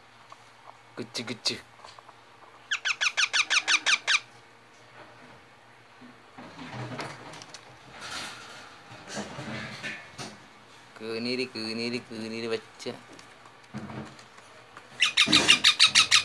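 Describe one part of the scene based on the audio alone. A parrot screeches loudly in rapid, repeated bursts.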